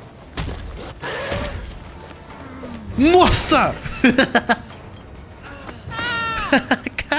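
A young man talks excitedly into a close microphone.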